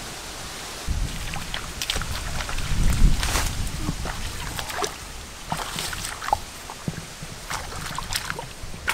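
Bare feet squelch and splash through shallow muddy water.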